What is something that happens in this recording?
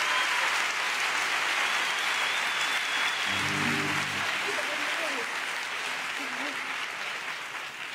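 Acoustic guitars strum.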